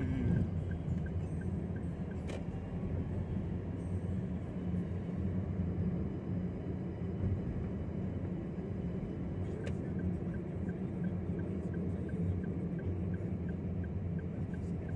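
A car rumbles steadily along the road, heard from inside the cabin.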